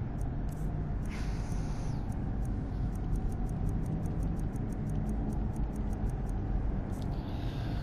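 Soft menu clicks tick quickly, one after another.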